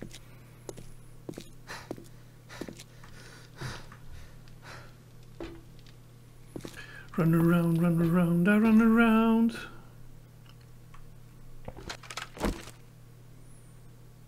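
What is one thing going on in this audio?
Footsteps clank on metal stairs and grating.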